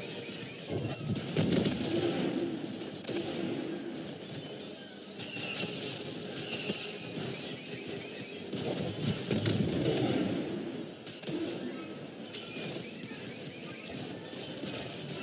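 A laser sword hums and swooshes as it swings.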